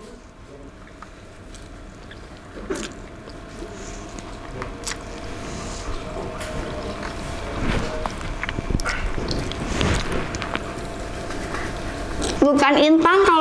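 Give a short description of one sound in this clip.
A young woman slurps and chews noodles loudly.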